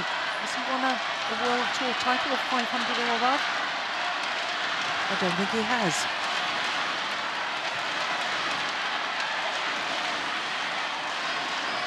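A large crowd roars and cheers in a big echoing hall.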